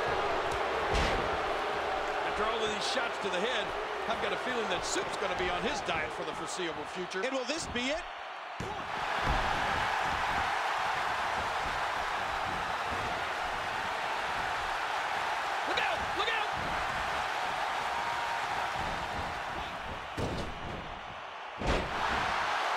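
Heavy thuds of bodies slamming onto a wrestling mat ring out now and then.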